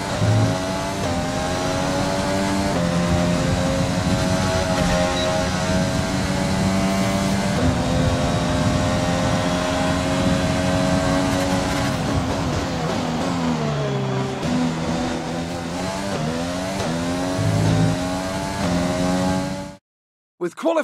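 A racing car engine roars at high pitch, rising and dropping as it shifts gears.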